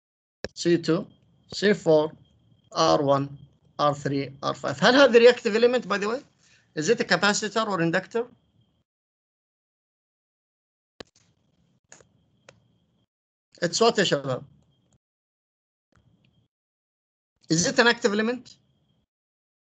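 A man speaks calmly through an online call microphone, pausing between phrases.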